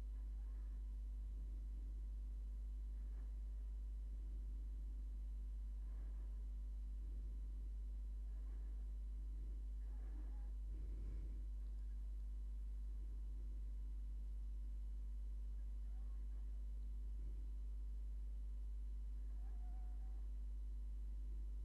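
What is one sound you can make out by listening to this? A small rotary tool hums steadily.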